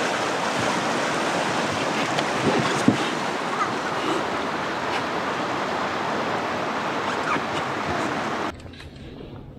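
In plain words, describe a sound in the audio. A river rushes and splashes over rocks close by.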